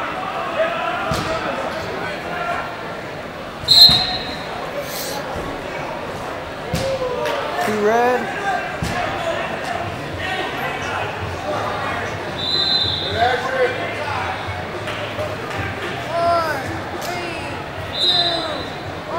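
Wrestlers thud and scuffle on a mat.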